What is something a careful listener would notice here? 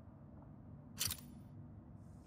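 A short interface click sounds as a marker is set.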